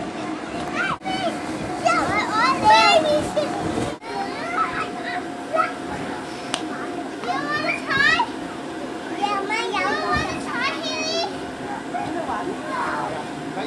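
Children thump on an inflatable bouncy slide.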